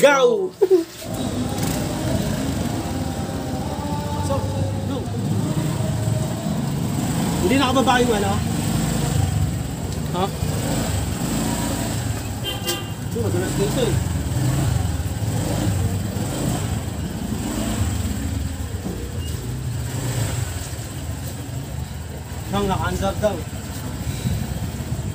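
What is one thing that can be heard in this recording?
A scooter engine hums and rumbles at low speed.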